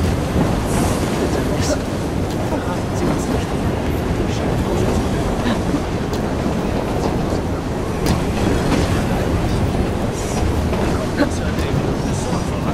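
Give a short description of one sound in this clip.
A steam train rumbles along the tracks ahead.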